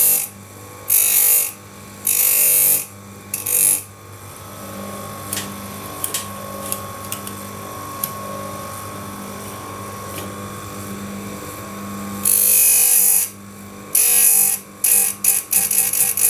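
A grinding wheel bites into a saw chain in short, loud, hissing bursts.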